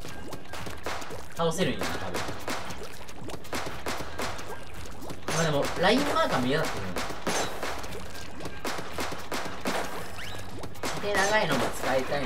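A toy ink gun fires in rapid splattering bursts.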